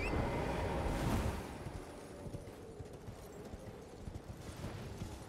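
Armored footsteps thud on stone.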